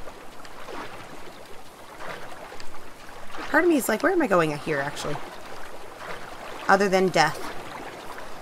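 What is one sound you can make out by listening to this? Water splashes and swishes as something glides quickly across it.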